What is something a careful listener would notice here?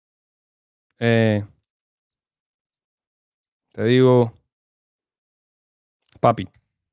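A young man speaks in short, drawn-out bursts close to a microphone.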